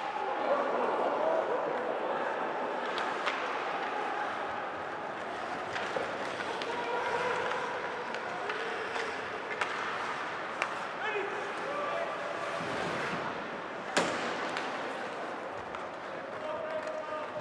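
Skates scrape and swish across the ice.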